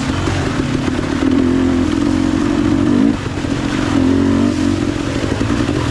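Tyres splash through muddy water.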